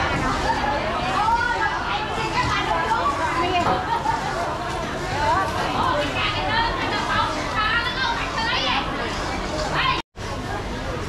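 Women talk with animation close by.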